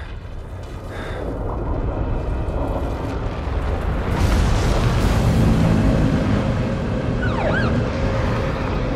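A fire roars and rumbles in the distance.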